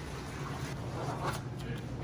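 A metal scraper scrapes across dough.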